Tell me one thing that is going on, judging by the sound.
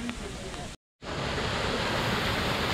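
A small waterfall splashes steadily into a pool.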